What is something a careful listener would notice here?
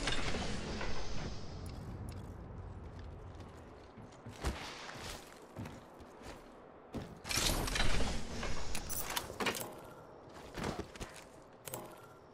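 Gear clicks and clatters as items are picked up.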